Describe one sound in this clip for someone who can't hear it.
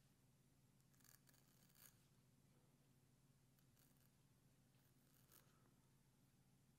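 A razor scrapes through stubble in short strokes.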